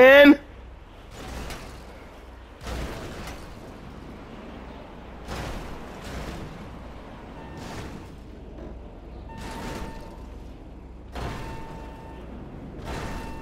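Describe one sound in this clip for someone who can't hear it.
A van crashes and scrapes as it tumbles over and over.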